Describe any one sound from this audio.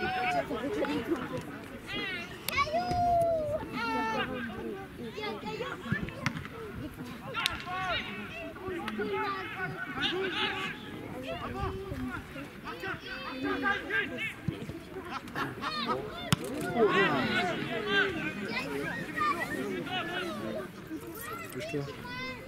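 Several people chat nearby outdoors.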